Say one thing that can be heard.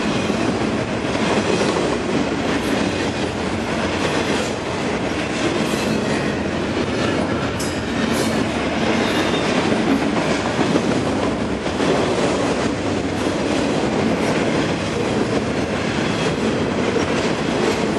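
A long freight train rumbles past close by, its wheels clattering and squealing on the rails.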